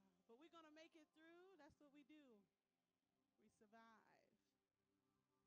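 A woman sings into a microphone with a strong, gliding voice.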